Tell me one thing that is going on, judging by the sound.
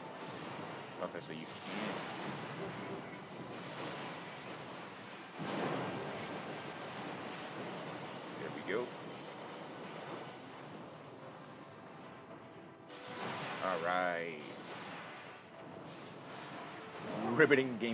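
Explosions burst with booming blasts.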